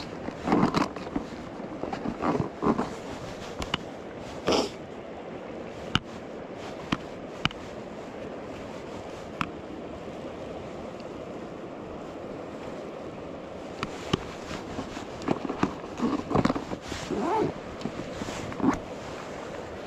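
A jacket rustles close by in short bursts.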